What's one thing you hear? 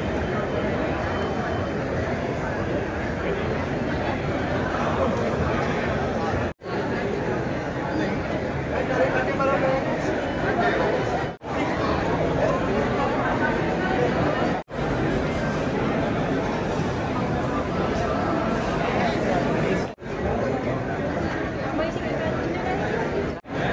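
A crowd of people chatters loudly in an echoing hall.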